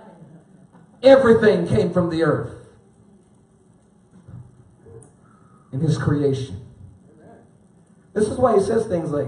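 A man speaks with animation through a microphone in a large room.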